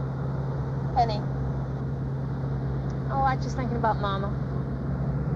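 A woman speaks calmly in a car.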